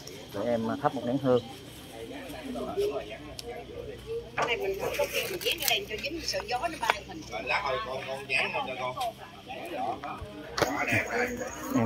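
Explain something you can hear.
Men and women chat quietly nearby outdoors.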